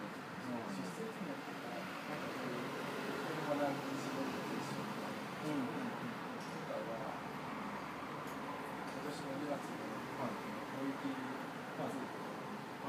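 Several young men talk and murmur nearby.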